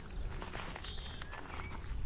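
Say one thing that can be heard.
Leaves rustle softly as a hand brushes them.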